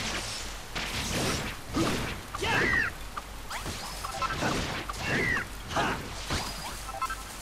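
A blade swishes through the air and strikes with sharp hits.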